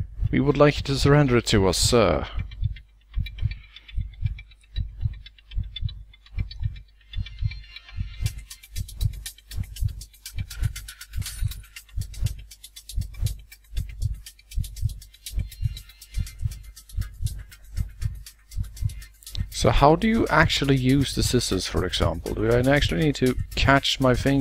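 A heart beats with steady, dull thumps.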